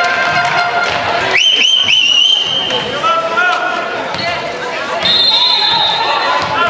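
A crowd of spectators murmurs and calls out across the hall.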